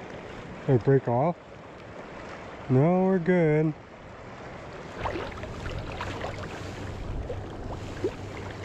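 A river flows and rushes nearby.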